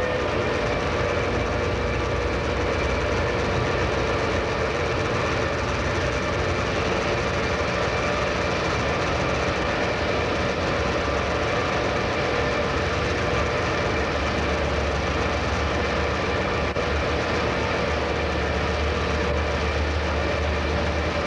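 A train's electric motors hum and whine steadily as it rolls along the track.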